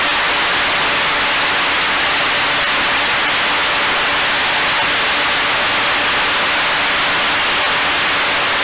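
Wind rushes steadily high in the open air.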